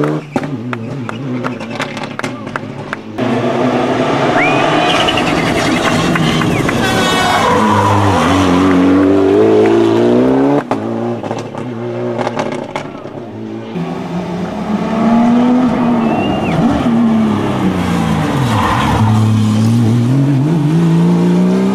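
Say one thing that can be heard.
A rally car engine roars and revs hard as it speeds past, close by.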